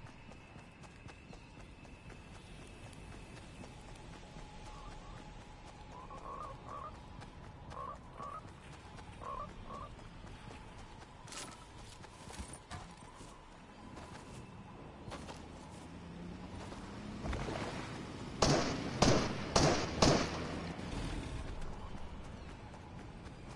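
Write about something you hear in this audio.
Footsteps run over ground.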